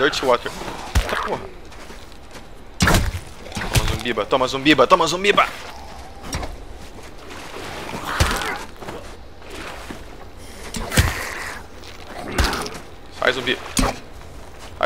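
A bowstring twangs as arrows are loosed.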